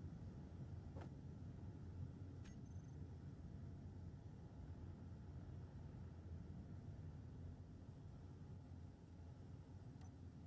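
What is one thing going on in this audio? Short interface clicks sound a few times.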